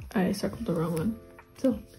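Binder pages flip and rustle as they are turned.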